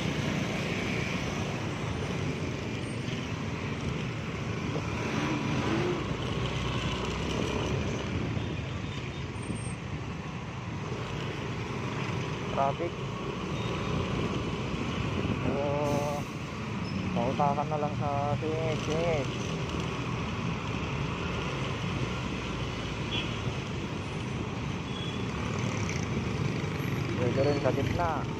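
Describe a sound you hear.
Traffic rumbles past on a busy road.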